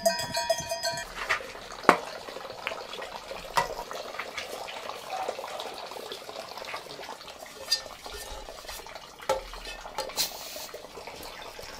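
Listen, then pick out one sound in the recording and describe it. A metal gas canister clinks and clicks as it is handled.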